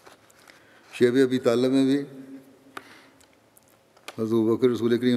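An elderly man speaks slowly and calmly through a microphone in a large, echoing room.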